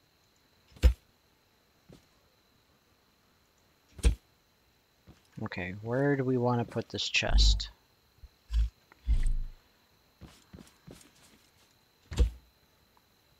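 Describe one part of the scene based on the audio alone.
Short sharp clicks sound now and then as items are placed.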